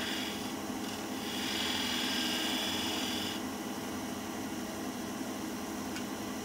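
A wood lathe hums steadily.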